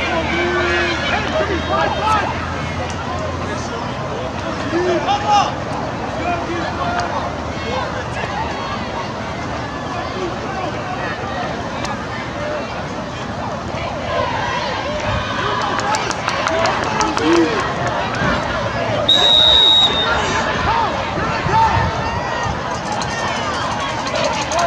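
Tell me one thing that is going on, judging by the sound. A large outdoor crowd chatters and cheers in the stands.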